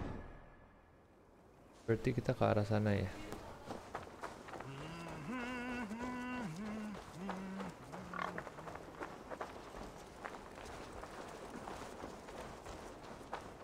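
Footsteps run quickly over dirt and wooden planks.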